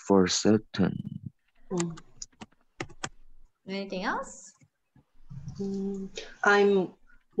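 A young woman speaks clearly and slowly over an online call.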